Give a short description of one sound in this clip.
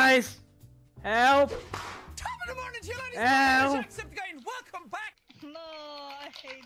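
A man shouts playfully in a high, squeaky voice over an online voice chat.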